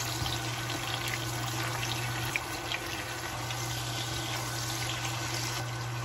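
Shrimp sizzle and crackle in hot oil in a pan.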